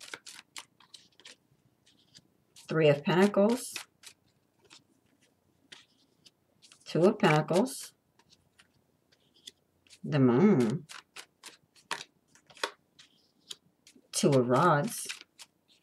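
Playing cards are laid softly on a cloth one by one.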